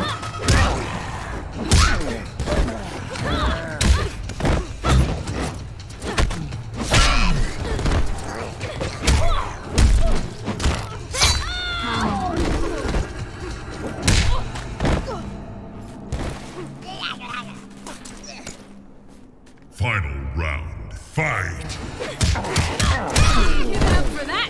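Heavy punches and kicks thud and crack in quick succession.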